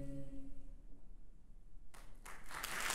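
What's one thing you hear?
A choir holds a final chord in a resonant hall.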